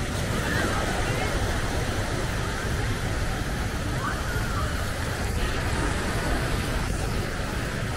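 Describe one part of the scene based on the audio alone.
Small waves wash onto a sandy beach.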